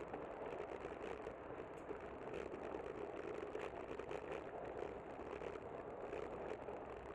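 Bicycle tyres hum on a smooth path.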